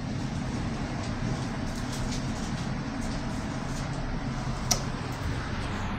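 A finger presses an elevator button with a click.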